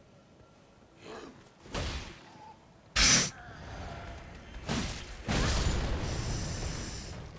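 Swords clash and strike during a fight.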